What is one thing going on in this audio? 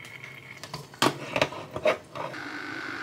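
A plastic bottle knocks and clicks into place on a machine.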